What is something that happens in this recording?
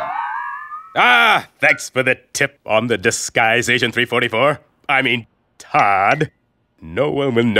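A man speaks with animation, in a cartoon voice.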